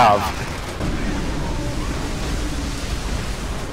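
Flames roar in bursts.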